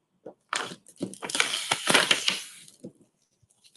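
Paper crackles as a plastic sheet peels away from it.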